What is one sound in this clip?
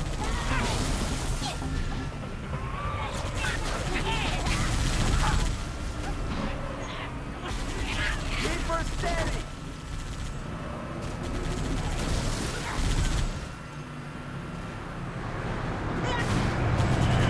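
A vehicle engine roars and revs.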